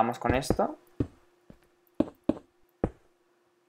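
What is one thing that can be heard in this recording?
Footsteps thud on stone at an even pace.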